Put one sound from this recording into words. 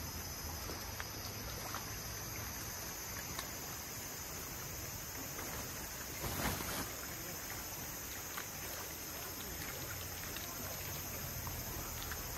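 Nylon fabric rustles and flaps as a tent is shaken out.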